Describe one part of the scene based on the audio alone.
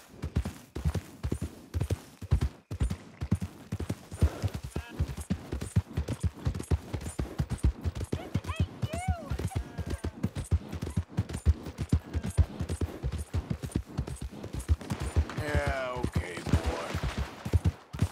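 A horse gallops with quick, heavy hoofbeats on soft ground.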